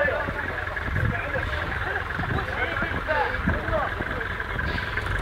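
Men shout and talk nearby, outdoors.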